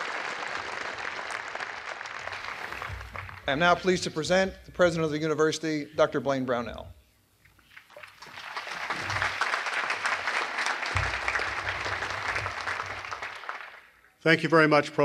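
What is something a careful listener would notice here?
A large outdoor crowd applauds.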